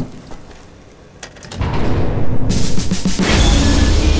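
A heavy lever clunks as it is pulled.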